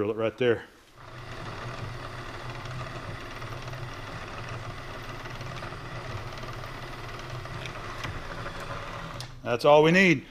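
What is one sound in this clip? A milling machine drill hums steadily as it cuts into metal.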